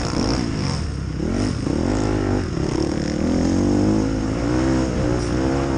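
A motorcycle engine revs loudly up close, rising and falling in pitch.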